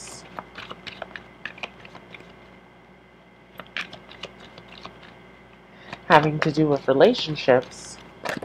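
Playing cards riffle and snap as they are shuffled.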